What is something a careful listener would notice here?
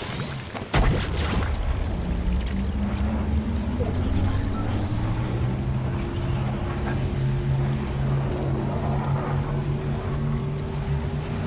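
A deep machine hum drones steadily.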